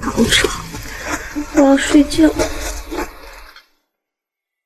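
A young woman speaks weakly and softly, close by.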